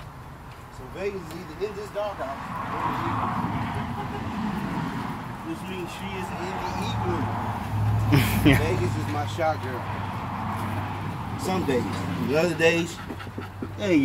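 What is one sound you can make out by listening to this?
A man talks nearby, calm and casual.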